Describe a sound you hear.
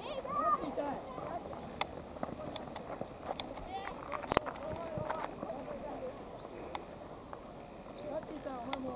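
Young boys shout and call out across an open field.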